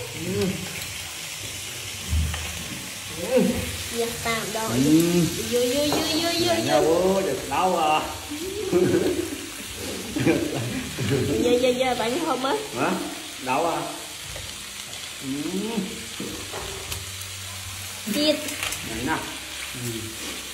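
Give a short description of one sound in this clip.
A man talks and laughs with animation close by.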